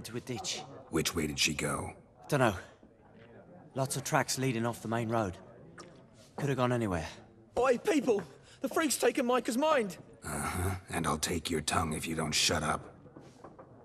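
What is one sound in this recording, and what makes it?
A man with a low, rasping voice asks a question and later answers curtly.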